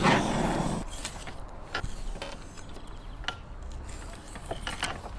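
A knife scrapes against a sharpening steel.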